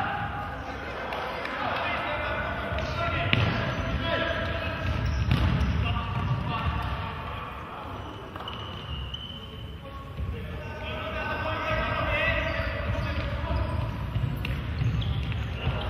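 Sneakers squeak on a hard floor in an echoing hall.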